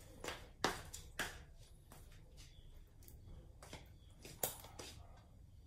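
Nail clippers snip with sharp clicks.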